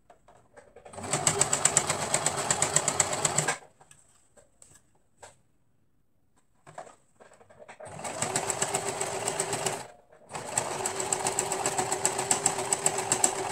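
A sewing machine runs fast with a steady rapid whir, stopping and starting.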